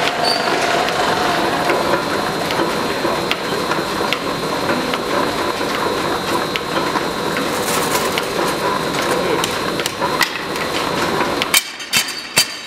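A forge fire roars steadily.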